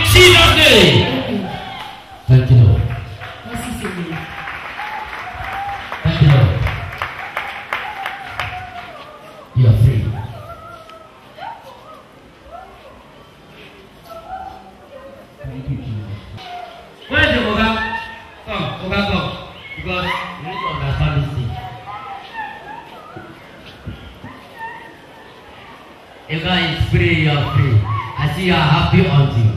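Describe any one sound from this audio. A man speaks loudly and with animation into a microphone, heard through loudspeakers in a large echoing hall.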